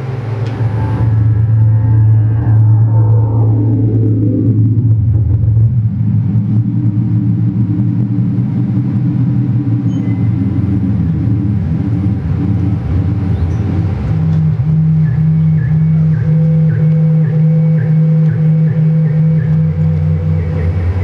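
Loud electronic music drones with deep, steady tones.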